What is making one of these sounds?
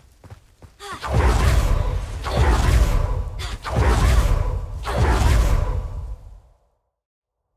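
A magic spell whooshes and roars in loud bursts.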